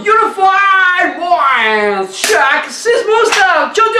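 A clapperboard snaps shut.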